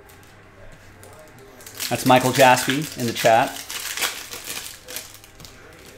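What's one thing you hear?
Trading cards rustle and tap as a hand handles them.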